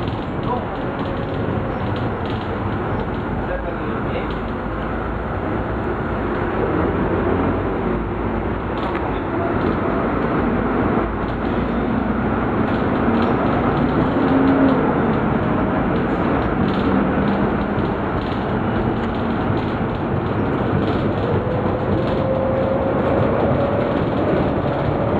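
Loose fittings rattle inside a moving bus.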